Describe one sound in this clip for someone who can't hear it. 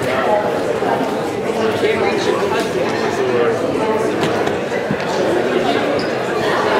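A piano plays.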